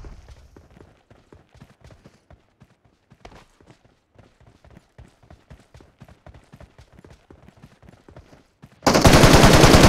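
Footsteps crunch quickly over rough ground.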